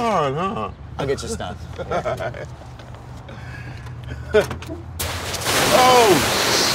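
A second man answers with animation.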